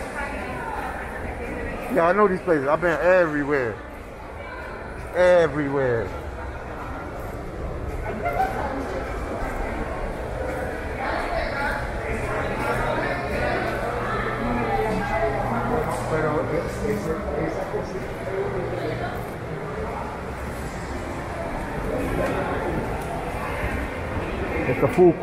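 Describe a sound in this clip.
People chatter in the background of a large echoing hall.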